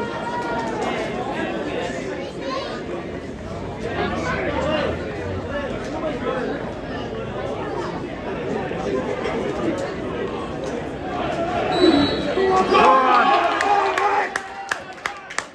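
A large crowd chants and sings loudly in an open-air stadium.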